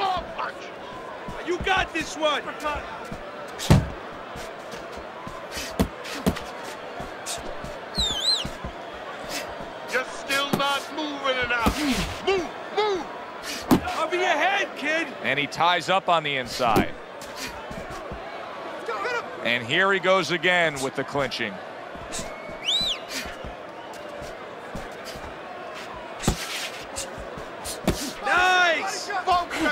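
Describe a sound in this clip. Gloved punches thud and smack in quick bursts.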